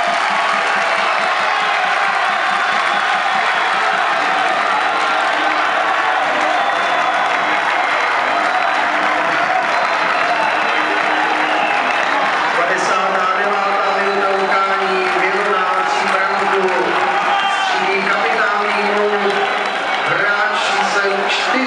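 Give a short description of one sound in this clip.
A large stadium crowd chants and sings loudly in unison outdoors.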